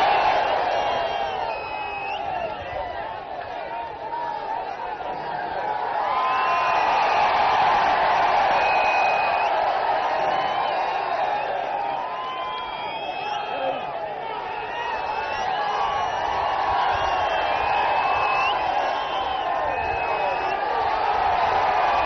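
Whistles blow shrilly from the crowd again and again.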